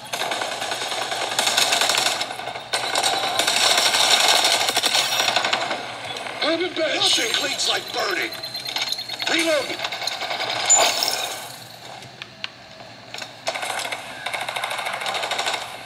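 Rapid gunfire from a video game rattles through small speakers.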